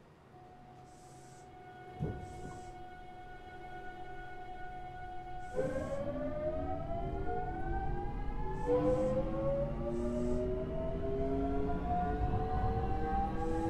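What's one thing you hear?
An electric train motor hums and whines higher as the train picks up speed.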